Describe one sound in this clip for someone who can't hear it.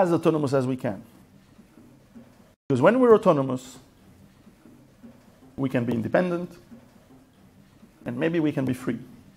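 A middle-aged man speaks with emphasis into a microphone, pausing between phrases.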